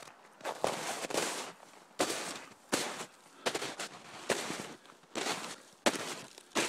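Footsteps crunch through deep snow at a steady walking pace.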